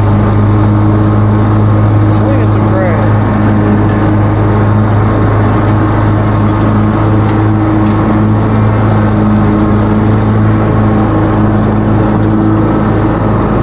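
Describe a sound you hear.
A mower engine drones steadily close by.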